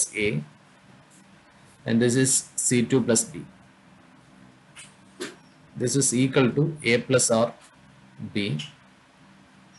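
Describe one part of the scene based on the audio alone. A man speaks calmly through a microphone, explaining in short phrases.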